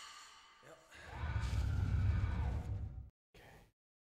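A low rumbling whoosh swells as a fighter vanishes.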